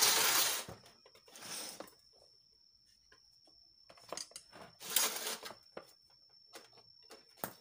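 Light clicks and knocks come from hands handling wires and an electronic board.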